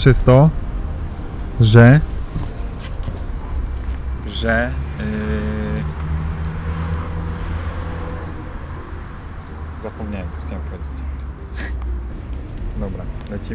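Young men talk casually close by, outdoors.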